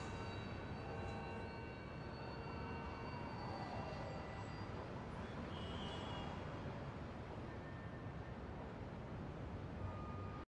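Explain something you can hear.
City traffic hums steadily in the distance outdoors.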